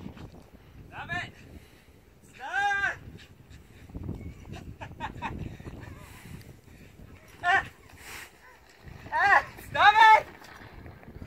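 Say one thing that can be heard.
A dog barks excitedly outdoors.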